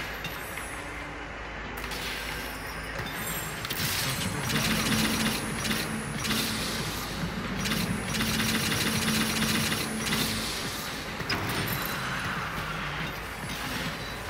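Fighting game characters clash with magical whooshes and hits.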